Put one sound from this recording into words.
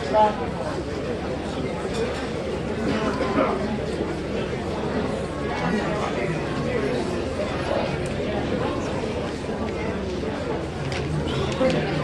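A brass band plays along with the singing.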